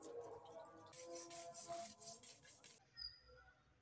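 A broom scrubs a wet floor.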